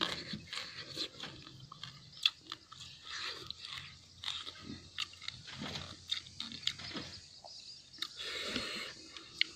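A young man chews food noisily, close by.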